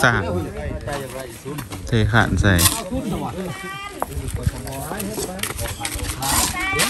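Several men talk loudly outdoors, close by.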